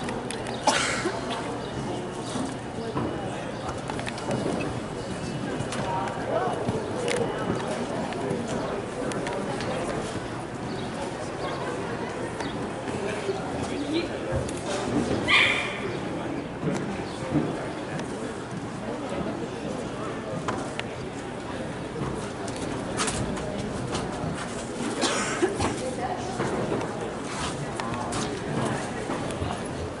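A horse gallops, hooves thudding on grass.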